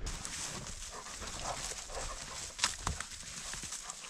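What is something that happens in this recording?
Footsteps crunch on dry twigs and moss.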